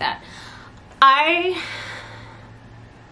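A woman cries out loudly in a long, drawn-out exclamation.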